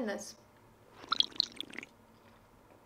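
A young woman slurps a drink through a straw.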